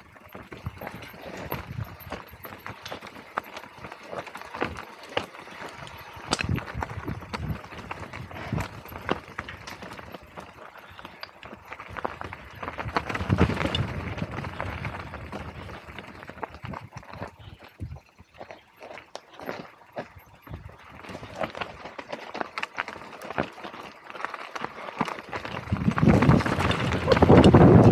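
Bike tyres crunch and rattle over a rocky dirt trail.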